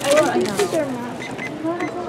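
Fingers tap on the keys of a cash register.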